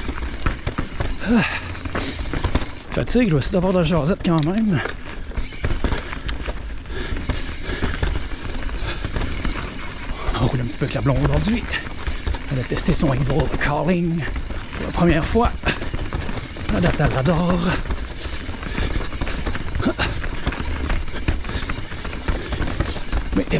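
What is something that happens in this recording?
A bicycle's chain and frame rattle over bumps.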